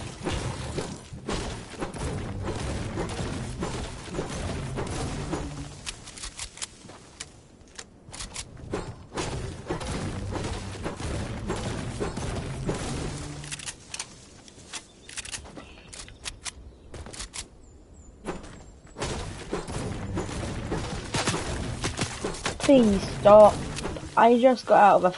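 A pickaxe strikes wood again and again with sharp knocks.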